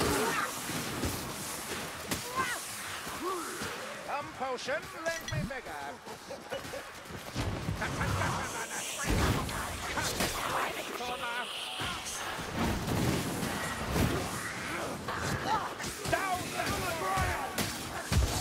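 Blades slash and thud into bodies in a fierce close fight.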